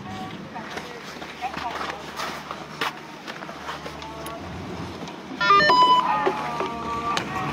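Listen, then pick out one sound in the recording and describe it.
A snowboard scrapes across packed snow.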